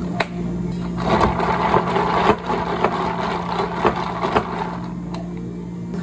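A straw stirs and rattles ice in a cup.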